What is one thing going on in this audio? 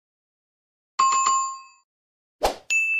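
A small bell rings briefly.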